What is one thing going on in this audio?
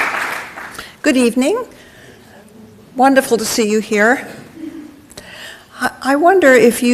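A woman speaks calmly into a microphone in a large hall.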